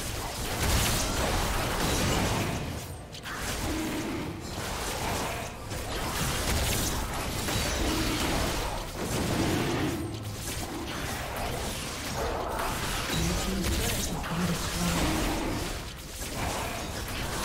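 Game spell effects and hits crackle and boom in a busy fight.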